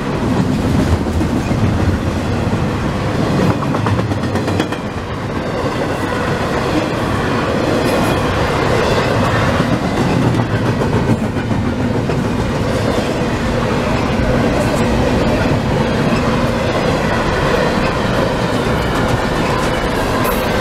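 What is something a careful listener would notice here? A long freight train rumbles past close by.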